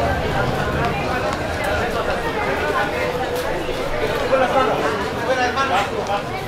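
Boxing gloves thud as young boxers trade punches.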